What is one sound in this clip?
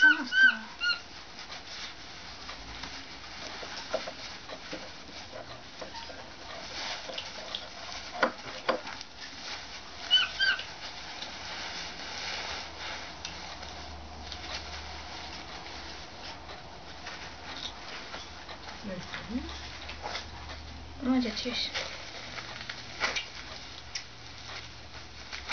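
Fabric rustles as it is handled.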